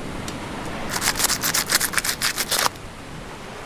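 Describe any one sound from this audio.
A knife stabs repeatedly into a crab's shell.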